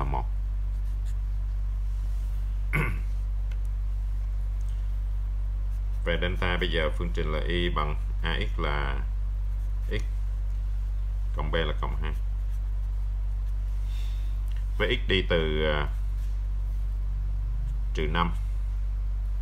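A pen scratches on paper as it writes.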